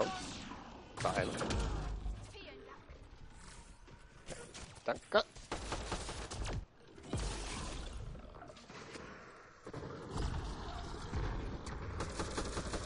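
Energy guns fire in rapid bursts with booming blasts.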